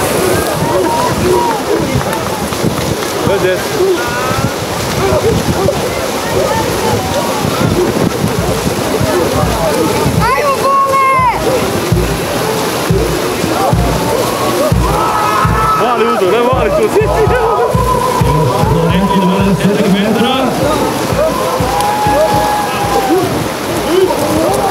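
Swimmers splash and churn through the water.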